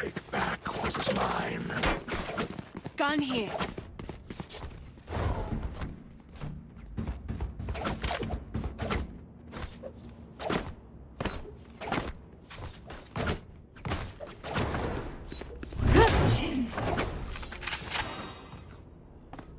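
Footsteps thud quickly and steadily.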